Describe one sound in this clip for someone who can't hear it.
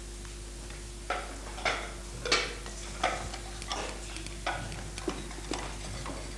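Typewriter keys clack in short bursts.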